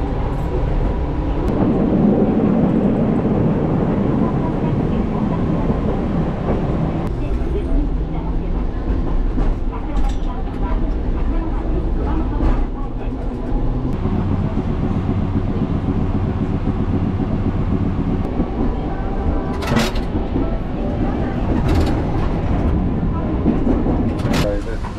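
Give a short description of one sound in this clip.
A tram rumbles and rattles steadily along its tracks.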